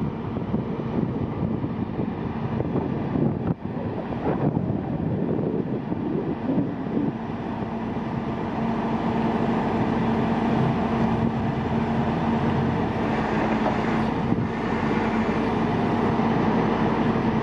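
A heavy truck engine rumbles steadily nearby.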